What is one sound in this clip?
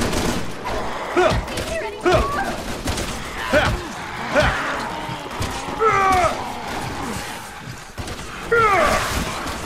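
A creature screeches.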